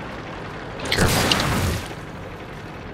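A shell explodes nearby with a loud blast.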